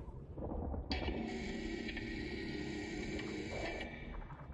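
A robot breathes heavily with a harsh, mechanical rasp.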